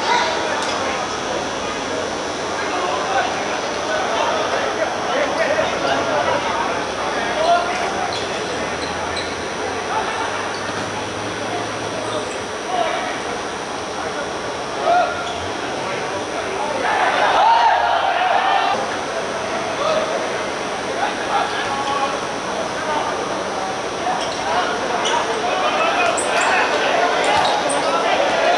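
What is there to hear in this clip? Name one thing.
Young men shout and call out across an open court.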